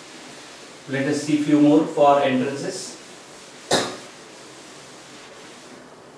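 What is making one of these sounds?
A felt eraser rubs across a chalkboard.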